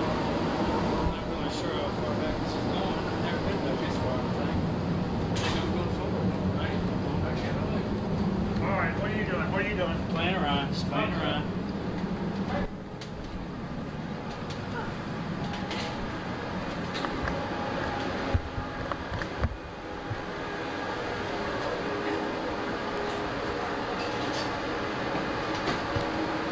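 A steady low hum of machinery drones.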